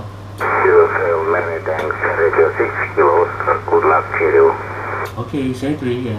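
A man talks through a crackly radio loudspeaker.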